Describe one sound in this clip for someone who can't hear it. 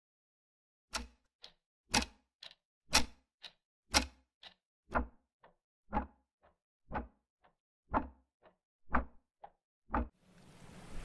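A clock ticks steadily once a second.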